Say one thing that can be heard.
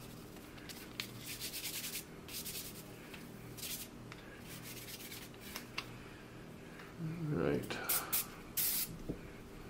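A cloth patch rubs and rustles against a metal part.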